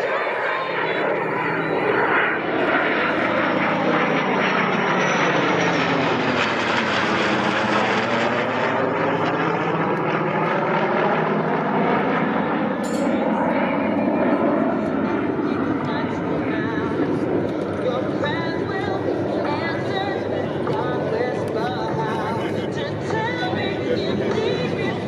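A jet roars loudly overhead, its pitch sweeping down as it passes and then fading into the distance.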